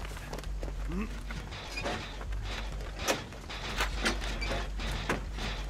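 Metal parts of an engine clank and rattle under quick tinkering.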